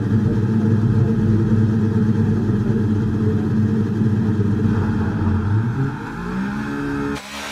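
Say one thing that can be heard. A racing car engine idles loudly with a rough rumble.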